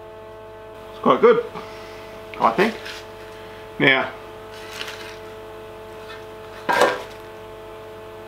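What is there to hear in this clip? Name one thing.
Sheet metal rattles and clanks as a man handles it.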